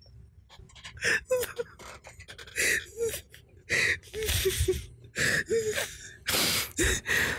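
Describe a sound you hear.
A young man laughs loudly and hysterically close to a microphone.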